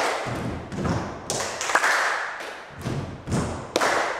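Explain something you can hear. A man claps his hands in an echoing room.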